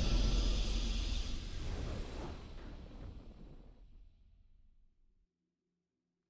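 A triumphant victory fanfare booms and slowly fades away.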